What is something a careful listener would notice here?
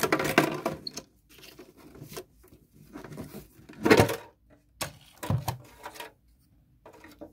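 A plastic bin knocks and rattles as it is handled.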